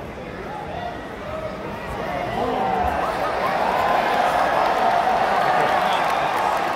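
A large arena crowd cheers and shouts, growing louder.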